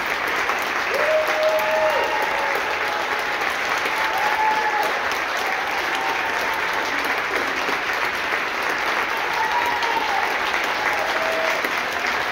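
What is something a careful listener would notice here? A concert band plays slow, sustained brass chords in a large hall.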